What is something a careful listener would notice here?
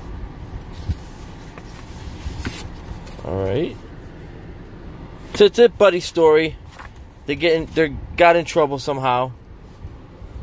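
Paper pages rustle as a comic book is leafed through.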